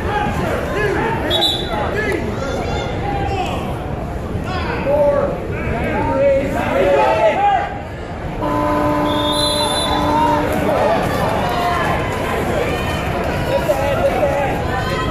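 A crowd of spectators talks and cheers in a large echoing hall.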